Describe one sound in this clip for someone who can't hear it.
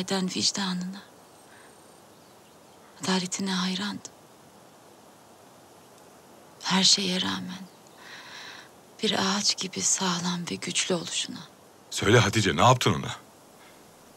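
A middle-aged man speaks in a deep, calm voice.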